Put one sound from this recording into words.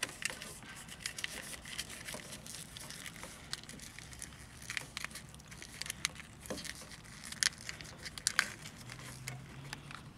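Hands rustle and click a plastic wiring loom.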